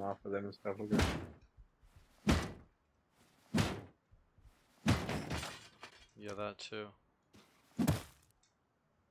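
A stone strikes wood with heavy knocks.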